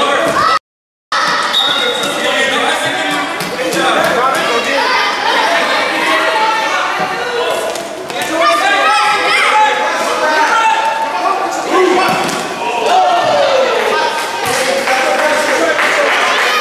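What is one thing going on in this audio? Children shout and cheer across a large echoing hall.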